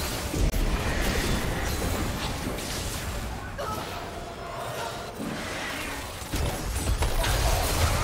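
Game spells crackle and blast in a fast fight.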